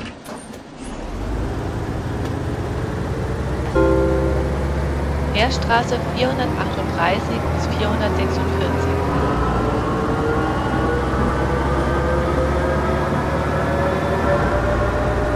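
A bus engine rumbles and revs up steadily as the bus speeds up.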